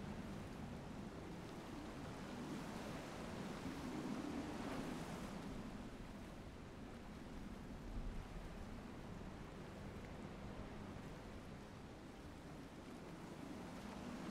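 Water rushes and splashes steadily against a moving boat.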